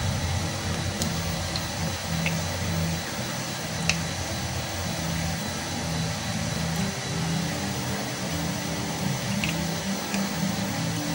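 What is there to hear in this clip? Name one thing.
Plastic parts click and knock together as they are handled.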